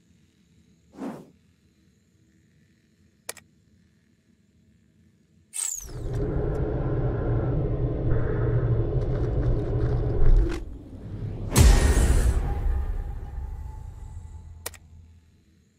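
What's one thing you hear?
Game menu clicks sound softly.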